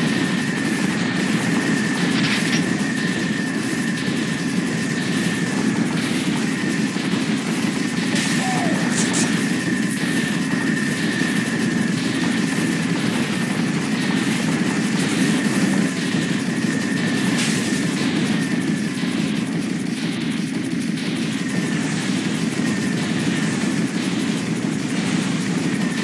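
A gun fires rapidly without pause.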